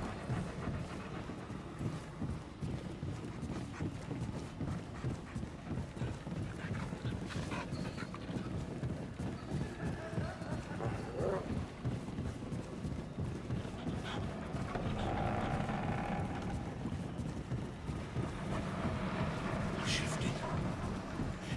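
Footsteps thud quickly on wooden floorboards.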